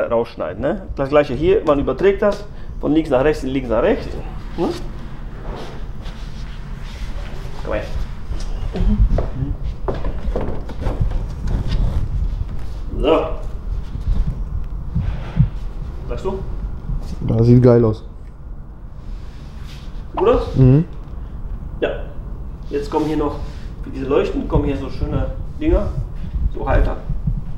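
A man talks calmly and close by.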